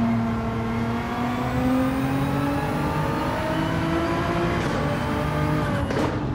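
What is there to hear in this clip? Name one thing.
A racing car engine roars and climbs in pitch as it accelerates through the gears.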